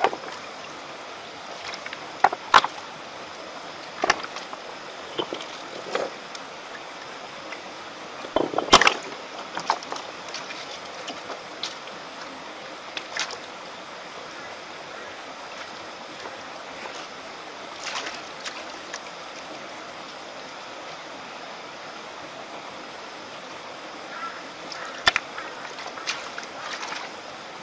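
Hands splash and rummage in shallow water among stones.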